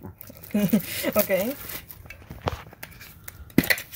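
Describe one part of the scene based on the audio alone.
Foil crinkles as hands handle a wrapped can.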